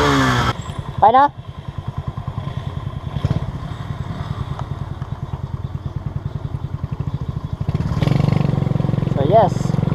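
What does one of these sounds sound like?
A motorcycle engine revs up sharply in short bursts.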